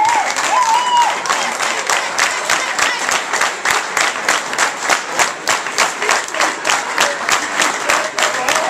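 A crowd claps in a steady rhythm.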